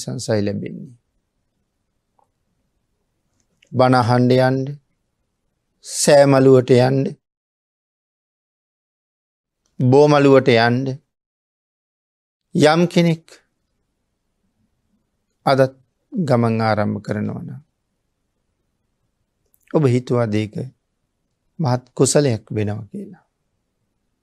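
A man speaks calmly and slowly, with long pauses, close to a microphone.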